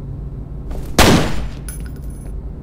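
A pistol fires a single loud shot that echoes.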